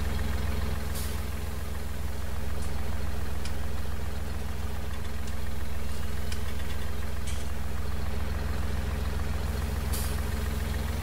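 Metal clanks sharply a few times.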